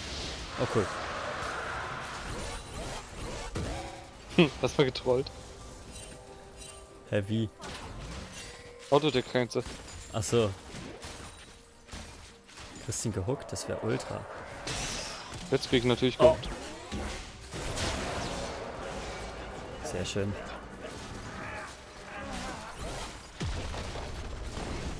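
Magic spell effects burst and crackle during a fight.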